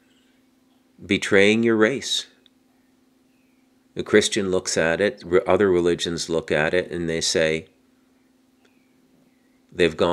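A middle-aged man speaks calmly and close into a microphone, pausing between phrases.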